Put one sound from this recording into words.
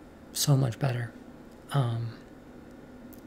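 A young woman speaks briefly and casually, close by.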